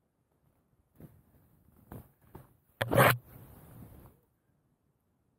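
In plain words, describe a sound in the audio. Skis hiss through deep powder snow close by.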